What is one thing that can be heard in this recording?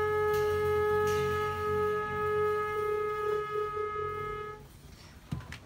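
A trumpet holds a long, steady note.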